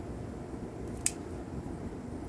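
Pruning shears snip once.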